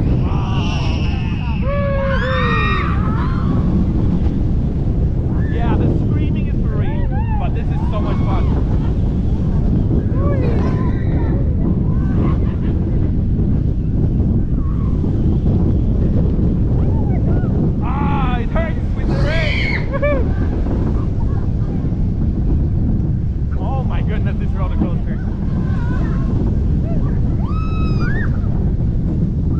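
A roller coaster rumbles and rattles along its track.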